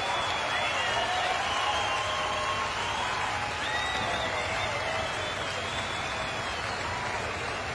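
A large crowd cheers and applauds loudly outdoors.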